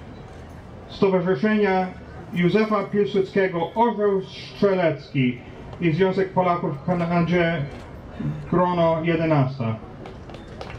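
A woman speaks slowly and loudly through a microphone over loudspeakers.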